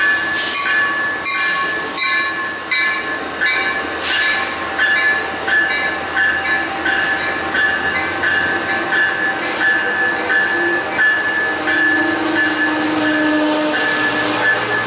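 A locomotive bell rings steadily.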